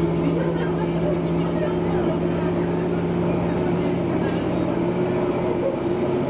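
A train's motor hums with a steady low drone.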